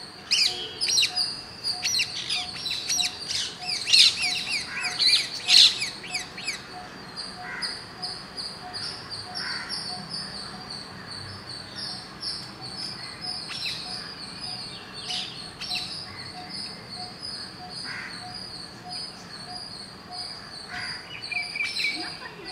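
Parakeets screech in shrill bursts close by, loudest at first.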